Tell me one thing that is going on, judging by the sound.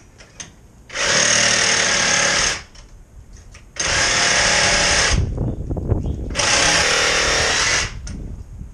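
A power drill whirs in three short bursts.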